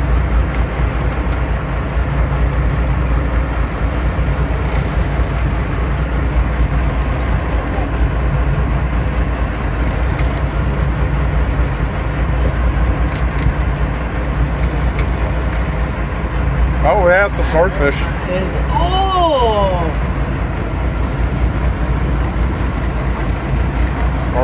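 Water rushes and splashes against a boat's hull.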